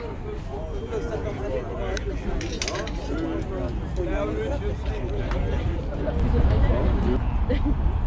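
Several adults chatter nearby outdoors.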